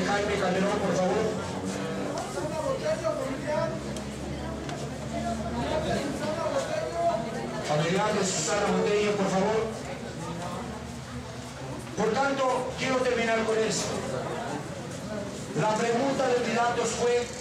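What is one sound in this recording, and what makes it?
A crowd of men and women chatter all around.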